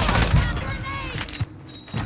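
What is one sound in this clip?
An explosion booms in a video game.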